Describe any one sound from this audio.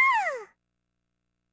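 A small creature gives a short, high squeak that falls in pitch.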